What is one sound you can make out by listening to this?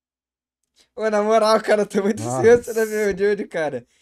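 Two young men laugh over an online call.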